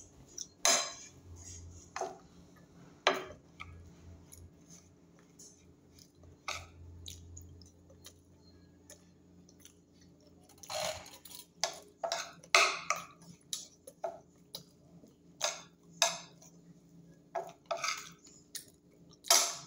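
A metal spoon scrapes and clinks against a bowl.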